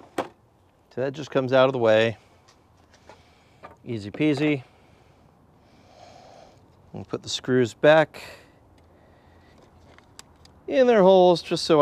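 A man talks calmly and close by, in short bursts.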